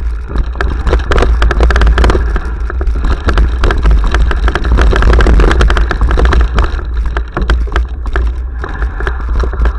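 Wind rumbles loudly against a helmet microphone.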